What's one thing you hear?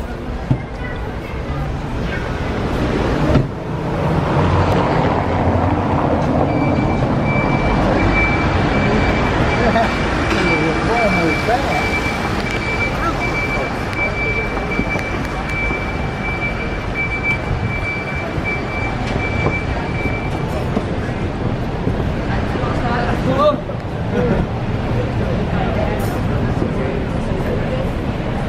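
A busy crowd of people murmurs and chatters outdoors.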